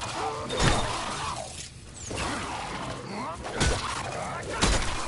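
A creature snarls and shrieks close by.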